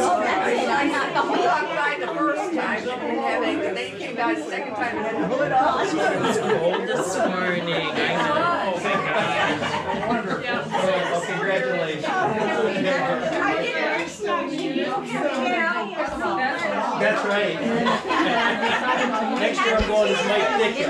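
A crowd of adults chatters in a room.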